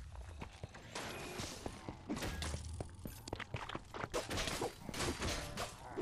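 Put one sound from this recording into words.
Arrows whoosh through the air.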